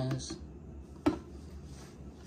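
A glass tube knocks lightly against a hard surface.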